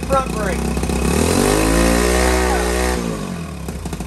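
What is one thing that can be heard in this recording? A small motorcycle engine revs up and falls back.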